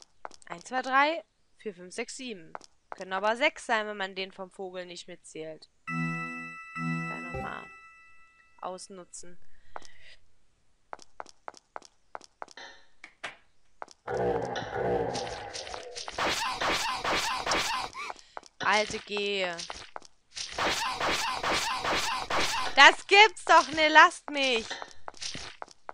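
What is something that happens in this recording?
A young woman talks with animation, close to a headset microphone.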